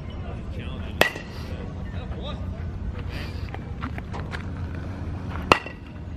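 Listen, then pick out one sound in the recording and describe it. A metal bat pings sharply as it strikes a ball.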